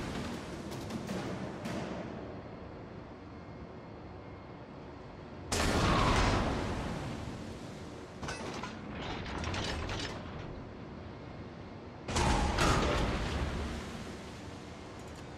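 Shells splash into the water close by.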